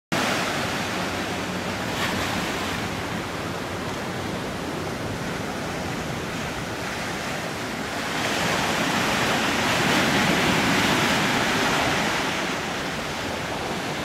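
Ocean waves wash up onto a sandy shore, swelling louder for a while.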